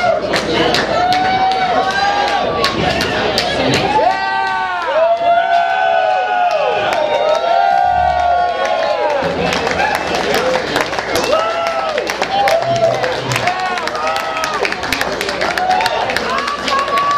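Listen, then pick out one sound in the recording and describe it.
A band plays loud rock music through amplifiers in a large hall.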